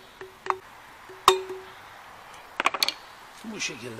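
A hammer taps sharply on metal.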